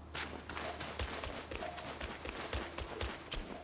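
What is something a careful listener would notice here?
Footsteps thud on stone at a quick, even pace.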